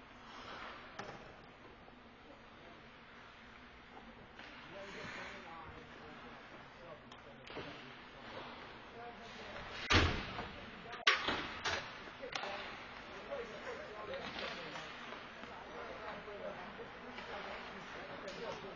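Hockey sticks and pucks clack sharply against the ice and boards.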